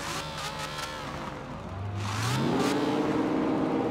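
An exhaust pops and crackles with backfires.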